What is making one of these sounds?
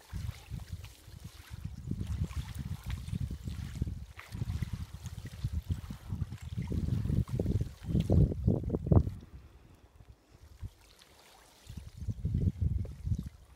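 Icy water sloshes and splashes as a man dunks in a hole in lake ice.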